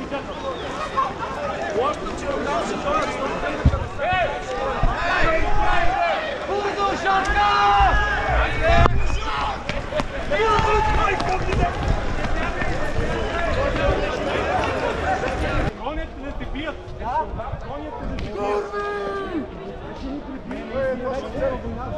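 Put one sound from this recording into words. A crowd of people chatters outdoors in a busy square.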